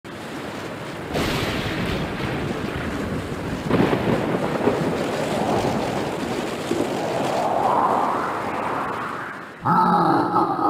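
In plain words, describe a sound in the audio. Strong wind roars and howls in a storm.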